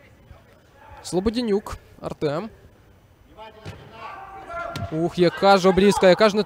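Men shout loudly across an echoing hall.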